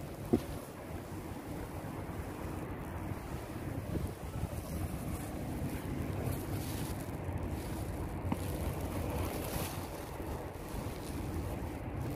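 Wind blusters steadily across open water.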